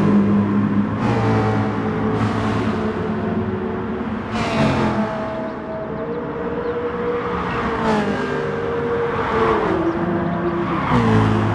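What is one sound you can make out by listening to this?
Racing car engines roar loudly and shift gears as the cars speed along a track.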